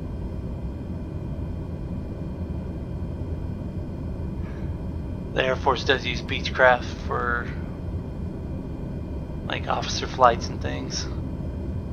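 A jet engine hums low and steadily.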